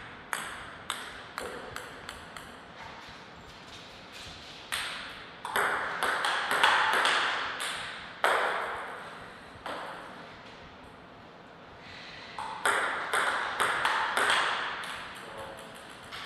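A table tennis ball clicks sharply back and forth on paddles and the table.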